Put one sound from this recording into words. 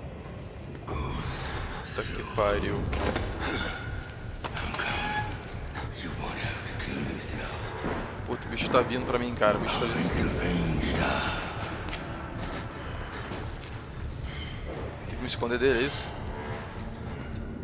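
A young man talks with animation into a close headset microphone.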